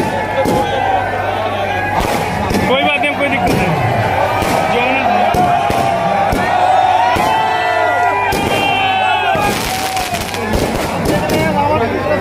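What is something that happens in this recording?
A large bonfire roars and crackles.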